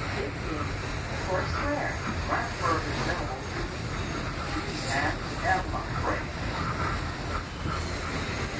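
Train wheels squeal and clatter on the rails.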